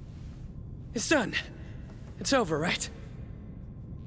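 A young man exclaims with excitement.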